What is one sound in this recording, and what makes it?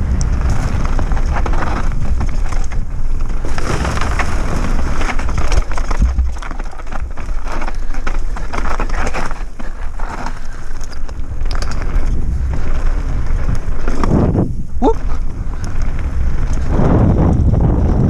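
Wind rushes loudly past a moving rider.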